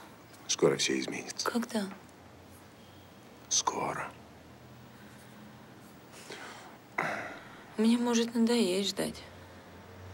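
A woman sighs and moans softly close by.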